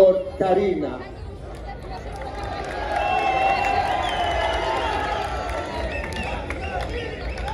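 A large crowd chatters and murmurs.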